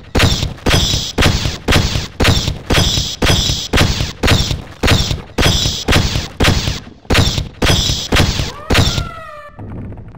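An organic alien weapon fires buzzing bursts in a quick rhythm.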